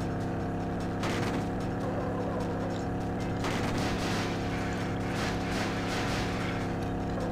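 Tyres skid and scrape on the track.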